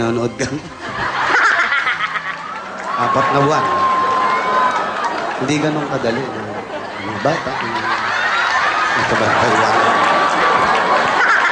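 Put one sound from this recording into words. A crowd cheers and claps in the background.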